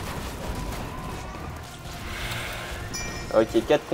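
Magic blasts and weapon clashes ring out in a fantasy battle.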